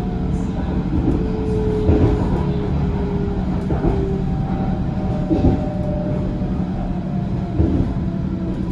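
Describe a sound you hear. Train wheels clatter and thump over rail joints.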